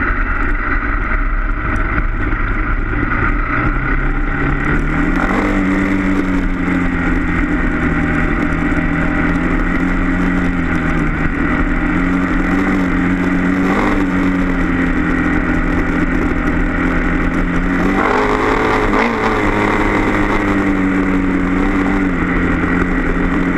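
A motorcycle engine drones close by, its pitch rising and falling as it speeds up and slows.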